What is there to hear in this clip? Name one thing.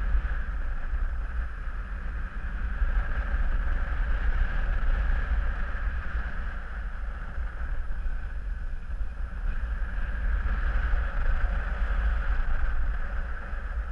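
Strong wind rushes and buffets steadily past the microphone.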